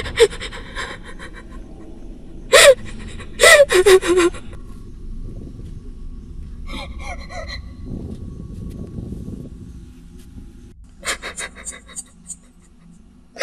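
A young woman sobs and wails loudly close by.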